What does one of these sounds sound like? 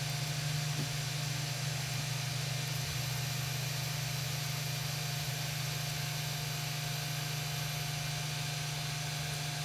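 A cooling fan whirs steadily.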